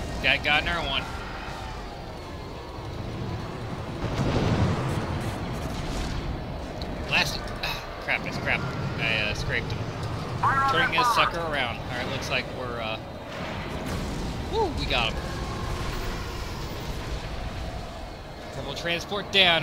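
Spaceship engines roar steadily.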